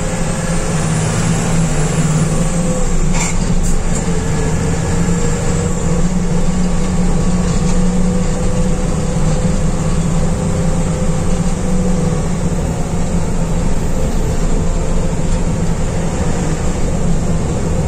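A bus engine hums steadily from inside the cabin.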